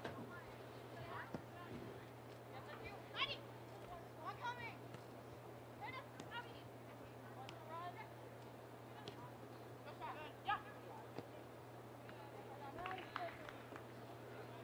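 Young women shout and call out across an open field, some way off.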